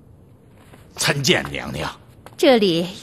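A man speaks politely through a microphone.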